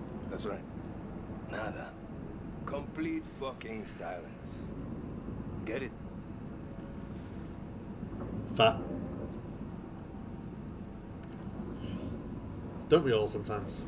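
A man talks casually over an online call.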